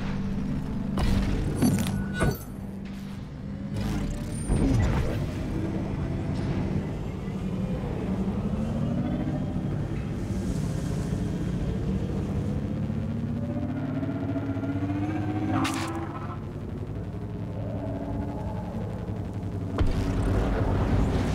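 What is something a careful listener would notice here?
A hovering craft's engine hums steadily.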